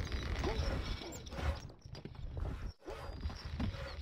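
Swords clash as soldiers fight.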